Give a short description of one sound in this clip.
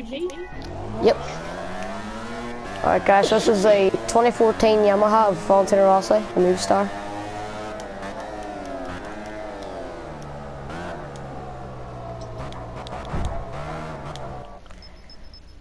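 A motorcycle engine roars, rising and dropping in pitch as it shifts gears.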